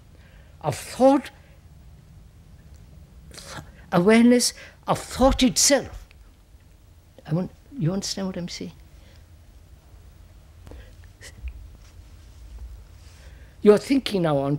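An elderly man speaks slowly and thoughtfully into a close microphone, with long pauses.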